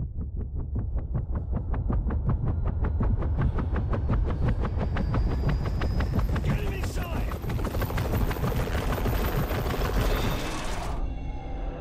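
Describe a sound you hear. Helicopter rotors thump loudly and rapidly.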